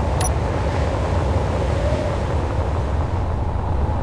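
A hand drill rumbles as it bores into rock.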